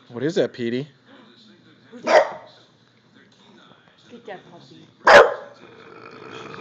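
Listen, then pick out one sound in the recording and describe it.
A dog barks loudly and sharply, close by.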